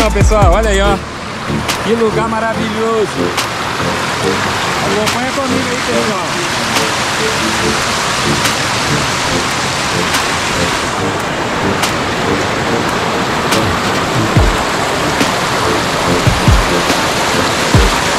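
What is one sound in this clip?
Water rushes and splashes steadily over rocks nearby.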